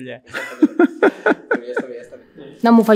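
A middle-aged man laughs heartily close by.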